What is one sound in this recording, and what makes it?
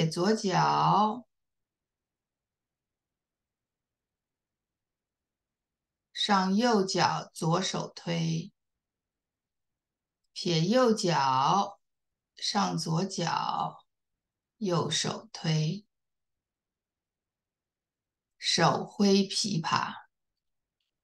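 A woman speaks calmly in short phrases, heard through an online call.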